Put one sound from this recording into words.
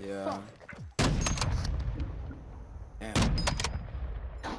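Gunshots crack in a game.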